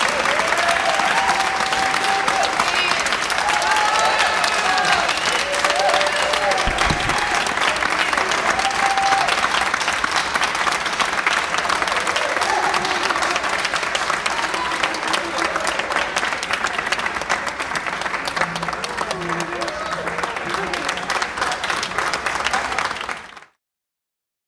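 An audience applauds loudly and steadily in a hall.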